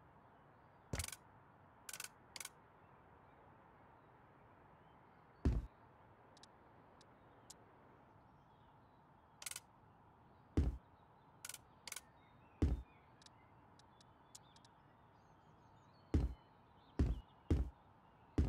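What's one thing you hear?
Short, sharp game menu clicks and thuds sound now and then.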